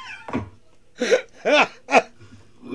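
A man chuckles in short bursts.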